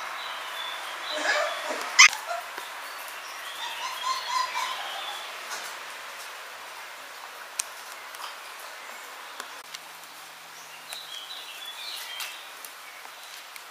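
Puppies whimper and yelp as they play.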